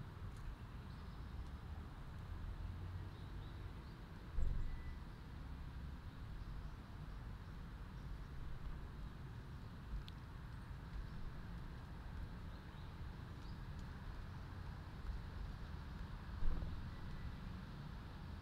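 Small birds chirp faintly nearby.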